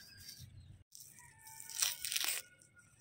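A knife slices through an onion with crisp cuts.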